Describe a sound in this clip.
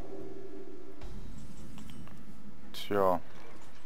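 A soft magical chime rings out as a new turn begins.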